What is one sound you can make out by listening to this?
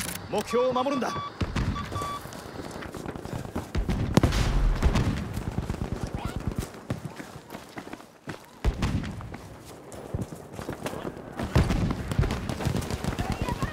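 Footsteps thud quickly over the ground.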